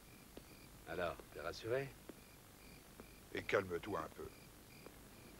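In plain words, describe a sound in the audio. A man speaks quietly close by.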